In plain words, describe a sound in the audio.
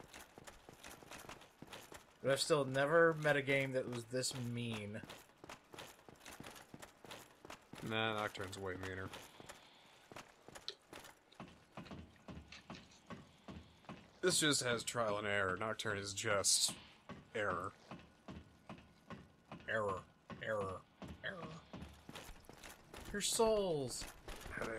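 Armored footsteps clank on a stone floor.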